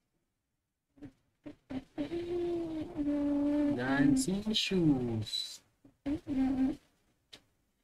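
A young boy speaks with animation close to a microphone.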